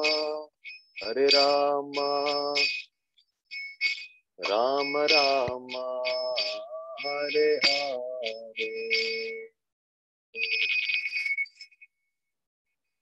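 A young man sings a chant over an online call.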